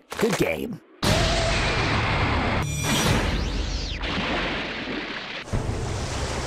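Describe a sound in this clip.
An energy blast whooshes and roars loudly.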